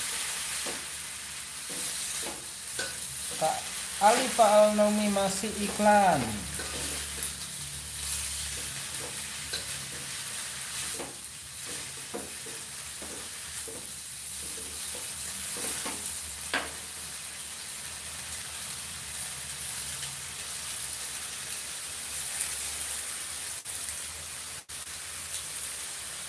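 Greens sizzle and hiss in a hot pan.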